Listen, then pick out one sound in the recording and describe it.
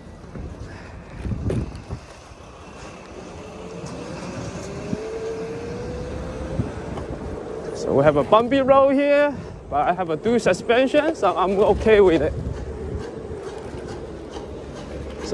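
Small tyres rumble over rough pavement.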